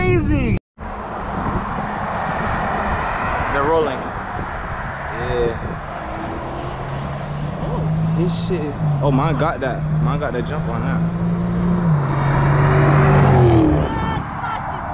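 A loud car engine drones and roars past along a road outdoors, then fades.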